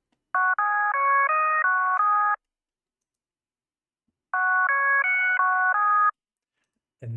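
A synthesizer plays a short bright melody twice.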